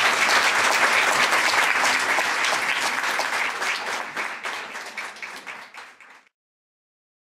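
A crowd applauds in a large hall, fading away.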